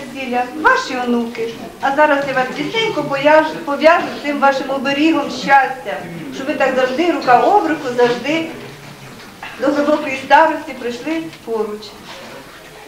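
A middle-aged woman speaks clearly and formally, close by.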